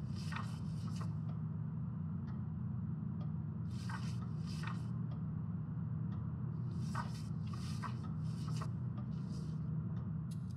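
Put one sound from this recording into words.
Pages of a book rustle and flip.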